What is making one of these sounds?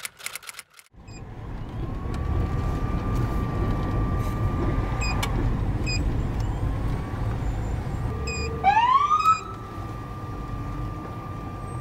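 A car engine hums steadily from inside the car as it rolls slowly along.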